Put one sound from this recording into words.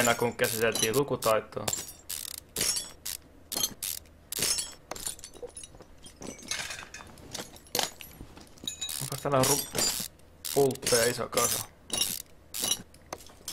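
A ratchet wrench clicks as bolts are undone.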